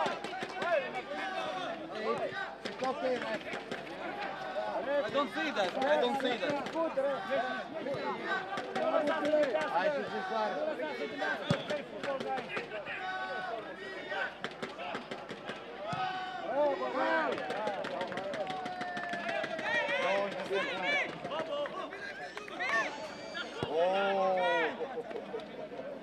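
Men shout and call out to each other across an open pitch.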